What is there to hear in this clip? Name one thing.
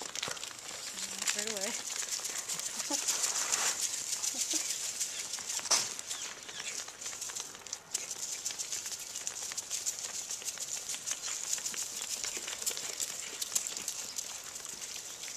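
Goats munch and crunch dry corn kernels close by.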